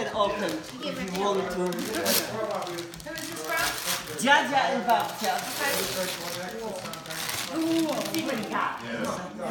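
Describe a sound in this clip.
Wrapping paper rustles and tears as a boy unwraps a gift.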